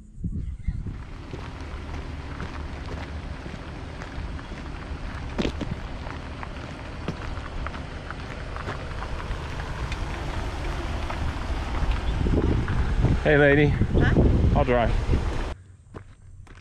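A jeep engine rumbles as it drives along a gravel track.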